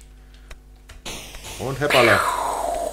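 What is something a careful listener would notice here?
A rocket whooshes through the air.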